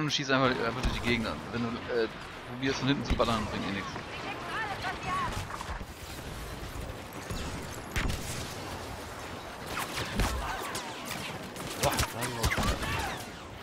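Laser blasters fire in quick bursts.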